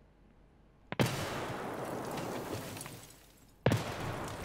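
A loud explosion bursts close by and rumbles away.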